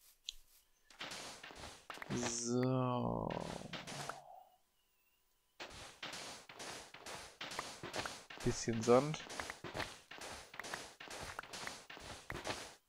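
Sand crunches in quick, repeated digging scrapes.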